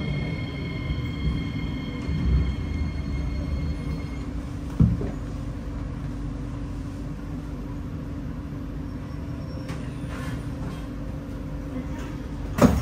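A train rumbles and hums steadily.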